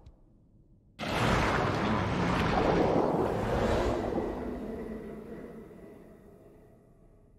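A monstrous fish lets out a deep, gurgling roar underwater.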